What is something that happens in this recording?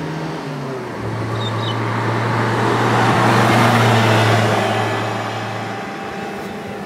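Tyres roar on the road as a truck passes.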